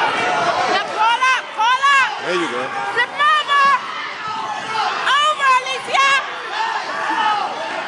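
Shoes squeak sharply on a rubber mat.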